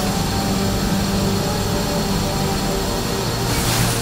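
A jet engine roars overhead as a craft descends.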